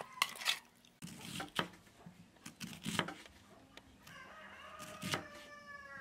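A knife chops through an onion onto a wooden board.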